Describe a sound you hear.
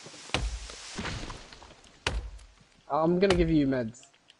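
An axe thuds into a tree trunk.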